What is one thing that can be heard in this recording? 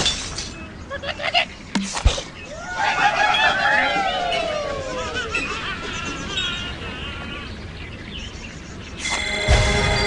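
Game sound effects chime and whoosh as a level ends.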